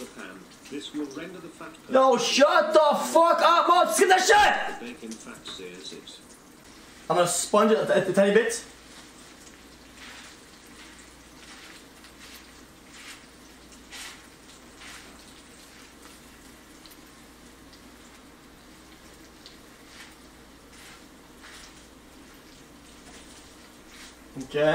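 Bacon sizzles softly in a hot pan.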